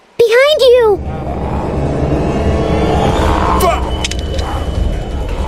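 A zombie growls and snarls loudly.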